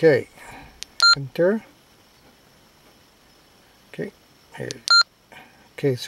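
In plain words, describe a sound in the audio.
A handheld radio gives short electronic beeps.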